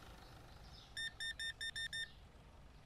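A cash register beeps several times in quick succession.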